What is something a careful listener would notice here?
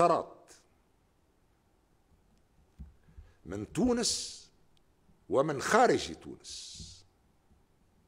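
An elderly man speaks slowly and firmly into a microphone, with long pauses.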